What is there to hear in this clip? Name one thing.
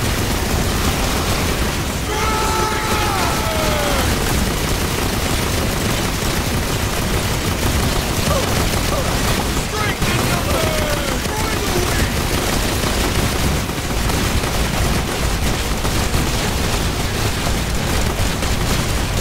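Gunfire and explosions rattle and boom without pause.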